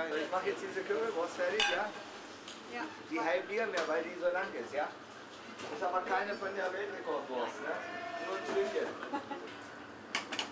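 An elderly man talks nearby.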